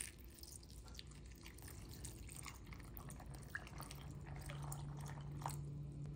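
Water pours into a glass bowl of nuts.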